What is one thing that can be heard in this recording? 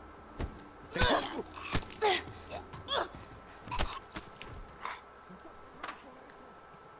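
Sharp stabbing blows land in quick succession.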